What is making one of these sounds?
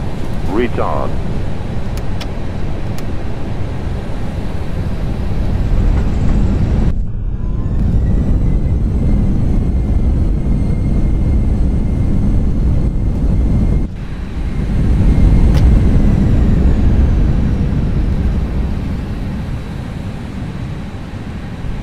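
Landing gear rumbles over a runway.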